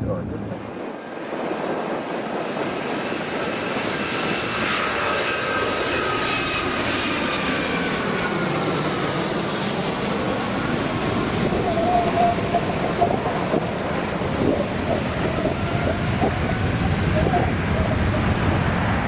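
Jet engines whine steadily as an airliner taxis, their pitch slowly sliding.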